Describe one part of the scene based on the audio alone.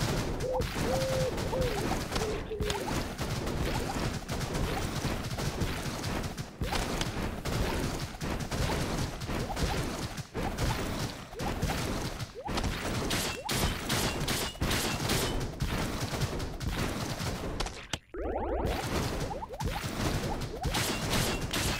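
Small laser shots fire in quick bursts.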